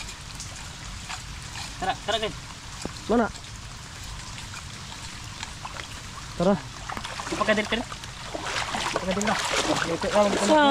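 Shallow water splashes and sloshes as feet and hands move through it.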